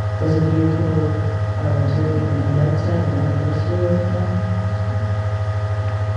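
A woman speaks into a microphone, heard through loudspeakers in a large room.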